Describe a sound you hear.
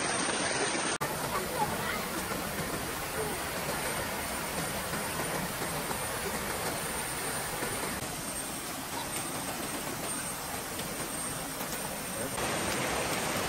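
Children splash about in water.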